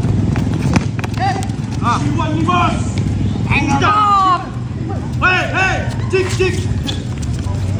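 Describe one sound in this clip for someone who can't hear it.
Young men shout to each other during play outdoors.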